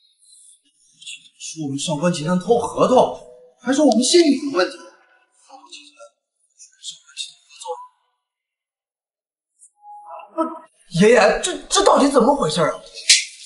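A young man speaks close by, puzzled and agitated.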